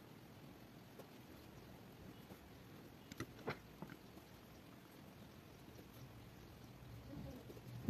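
A pencil writes on paper.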